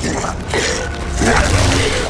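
A loud explosion bursts close by.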